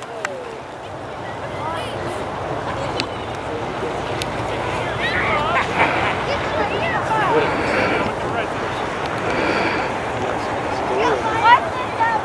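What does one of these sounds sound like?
Children shout and squeal at a distance outdoors.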